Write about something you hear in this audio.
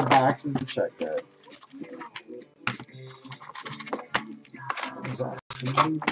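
A cardboard box lid is lifted open.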